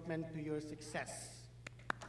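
An elderly man speaks into a microphone over loudspeakers in a large hall.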